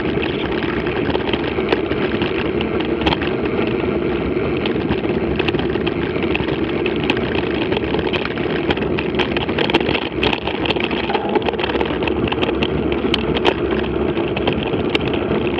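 Wind rushes steadily past a moving bicycle outdoors.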